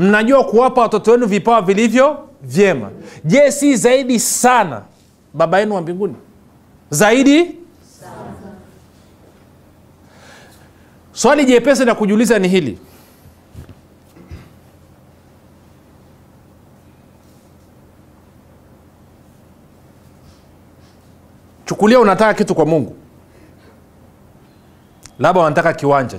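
A middle-aged man speaks animatedly into a microphone, in bursts with long pauses.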